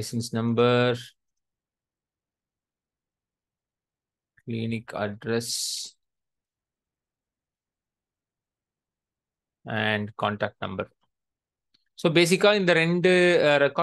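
A young man speaks calmly through a microphone, in short bursts with pauses.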